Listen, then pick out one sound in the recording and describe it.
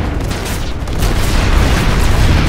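A laser weapon fires with a hissing buzz.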